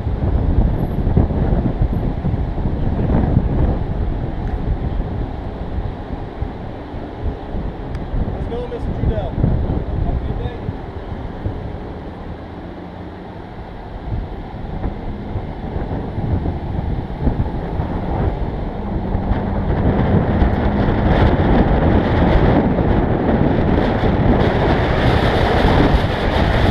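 A car engine hums as the car rolls slowly.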